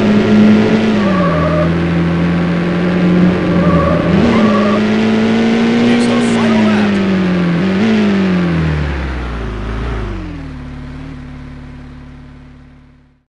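A V12 sports car engine races at full throttle, its pitch dropping at each gear change before it fades away.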